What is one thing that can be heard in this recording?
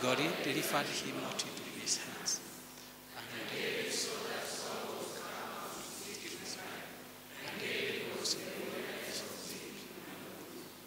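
A man preaches into a microphone with animation, heard through loudspeakers in an echoing hall.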